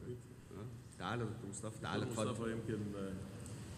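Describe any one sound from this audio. A man speaks clearly into a microphone.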